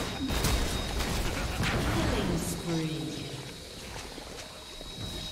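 Video game spells crackle and burst in a busy fight.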